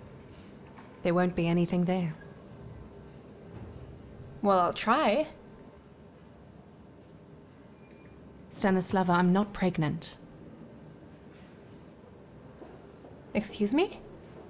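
Another woman answers calmly nearby.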